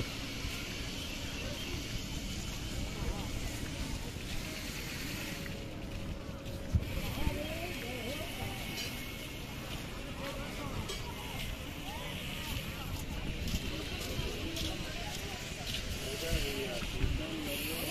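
A crowd of men and women chatters at a distance outdoors.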